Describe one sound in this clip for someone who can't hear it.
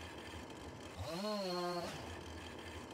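A chainsaw engine revs briefly.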